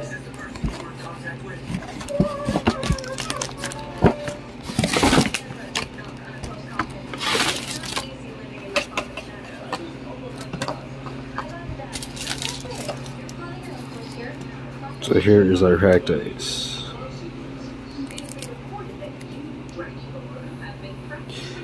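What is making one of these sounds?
Plastic card packs rustle and crinkle in a hand.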